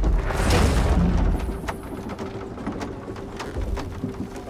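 Heavy footsteps thud on wooden boards.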